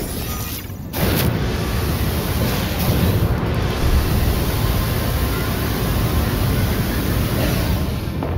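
A jetpack roars with a steady rushing thrust.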